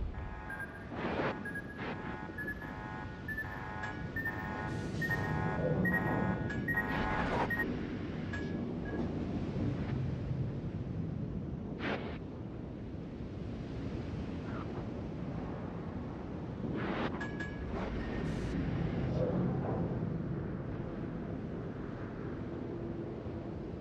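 A ship's engine rumbles low and steadily.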